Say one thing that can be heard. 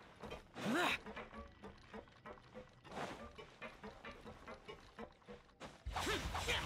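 Footsteps tap quickly across a wooden walkway.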